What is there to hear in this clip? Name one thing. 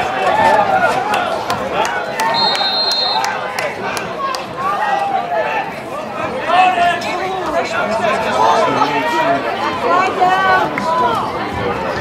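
Players shout across an open field.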